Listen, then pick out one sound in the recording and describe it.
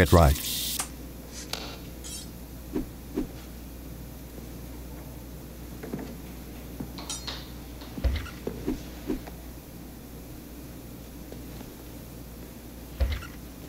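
Footsteps tap slowly along a hard floor in an echoing hallway.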